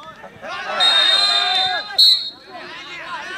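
A referee's whistle blows shrilly twice.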